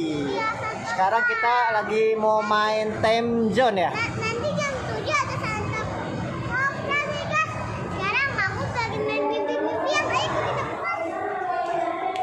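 A young girl talks with animation close by, in an echoing hall.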